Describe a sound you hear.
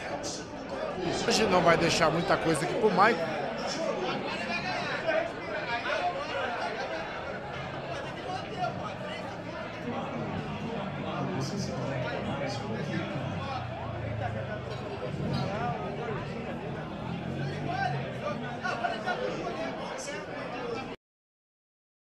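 A crowd of men chatters and murmurs nearby.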